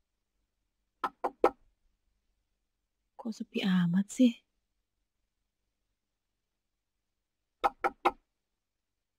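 A woman knocks on a wooden door.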